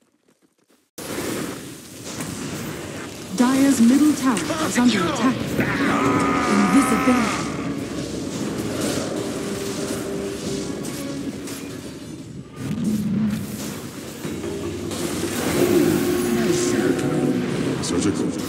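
Magical spells whoosh and crackle during a battle.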